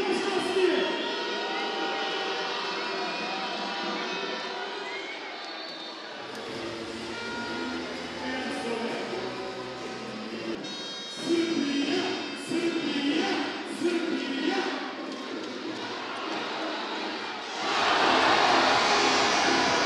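A large crowd cheers and chants in an echoing arena.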